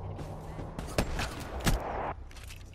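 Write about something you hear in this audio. A rifle fires a few sharp, loud shots.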